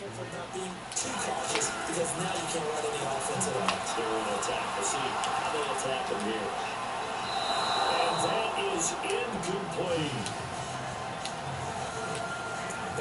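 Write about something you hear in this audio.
A stadium crowd cheers and roars through a loudspeaker.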